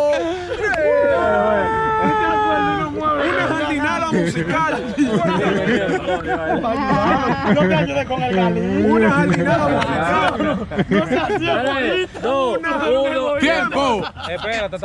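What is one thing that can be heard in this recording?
A crowd of young men shouts and cheers.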